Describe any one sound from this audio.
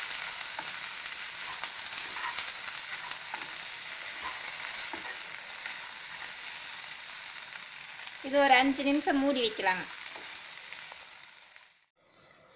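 A wooden spoon scrapes and taps against a metal pan.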